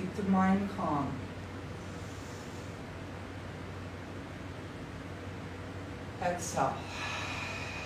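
A woman speaks briefly and calmly close by.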